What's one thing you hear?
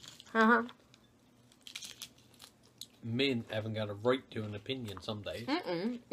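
People crunch and chew salad up close.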